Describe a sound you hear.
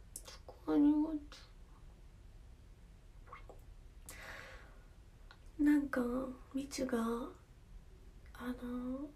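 A young woman speaks softly and casually close to a phone microphone.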